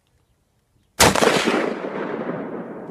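A rifle fires a single loud shot that echoes outdoors.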